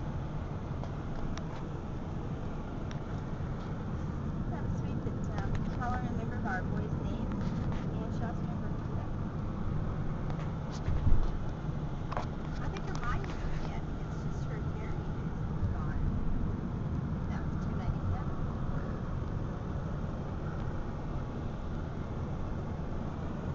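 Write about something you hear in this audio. A car's engine and tyres rumble steadily from inside the car as it drives along.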